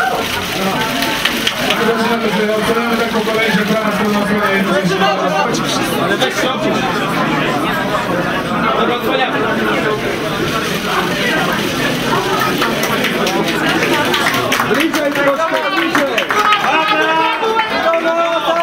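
A crowd of people chatter in a busy room.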